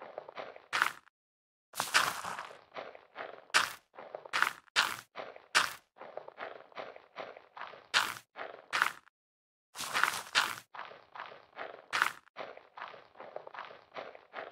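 Short crunchy digging and planting sounds repeat in quick succession.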